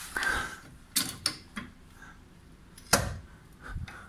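A metal jack handle clanks against a jack.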